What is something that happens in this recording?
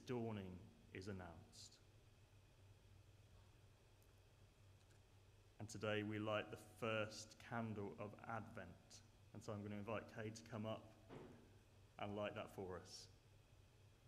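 A young man speaks calmly into a microphone in a large echoing hall.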